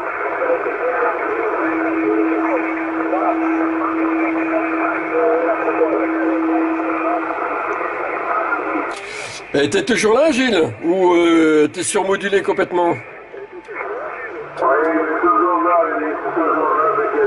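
Men talk through a crackling radio loudspeaker.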